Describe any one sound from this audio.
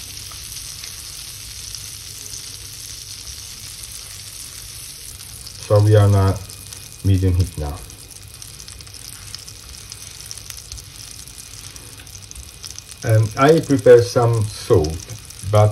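Butter sizzles and crackles steadily in a hot pan.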